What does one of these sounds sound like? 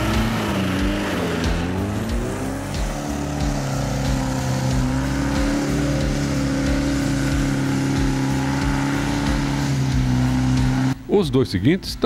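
An engine revs and labours loudly close by.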